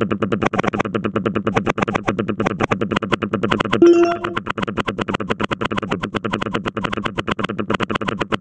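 Rapid popping game effects play as a harvester cuts through crops.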